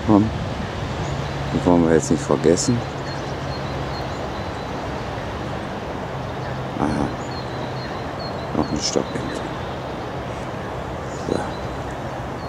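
A duck quacks loudly in short bursts close by.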